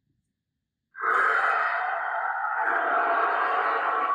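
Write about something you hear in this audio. A dragon decoration lets out a loud rushing roar.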